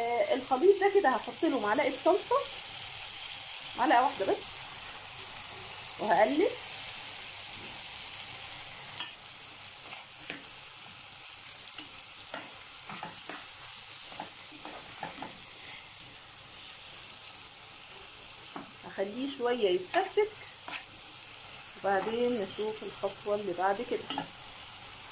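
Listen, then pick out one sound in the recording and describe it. A metal spoon scrapes and stirs food in a pot.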